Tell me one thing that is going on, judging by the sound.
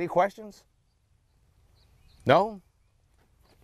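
An elderly man speaks outdoors, close by.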